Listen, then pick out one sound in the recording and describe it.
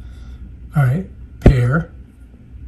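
A plastic glasses frame clicks softly as it is handled.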